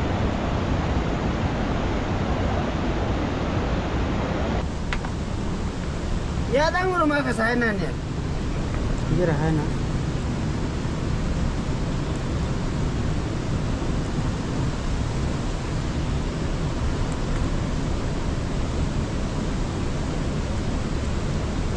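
A river rushes steadily over rocks nearby.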